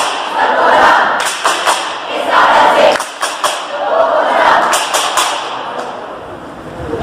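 A group of young people chants loudly in unison in a large echoing hall.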